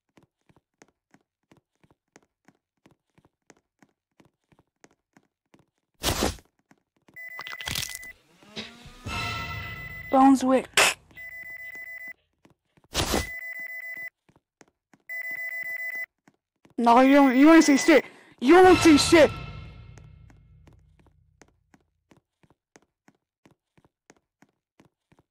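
Footsteps patter quickly and lightly as a game character runs.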